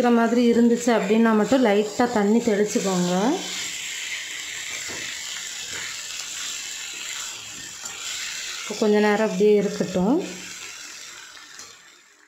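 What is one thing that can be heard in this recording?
A metal spoon scrapes against a pan.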